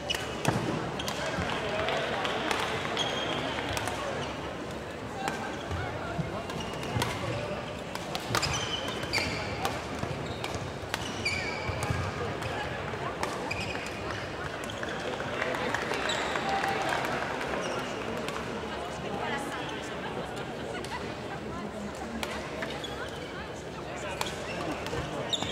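Spectators murmur in the stands.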